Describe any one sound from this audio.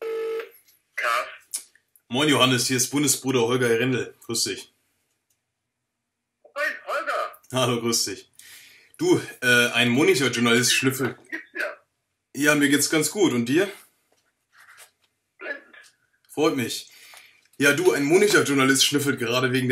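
A young man talks into a phone with animation.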